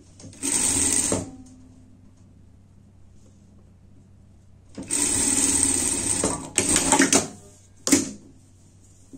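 A sewing machine whirs in short bursts as it stitches.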